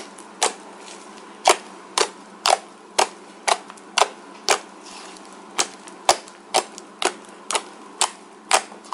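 Hands squish and poke soft slime with sharp crackling pops.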